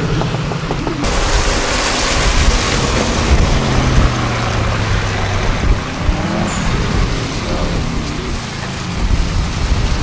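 A powerful car engine roars and rumbles as it passes.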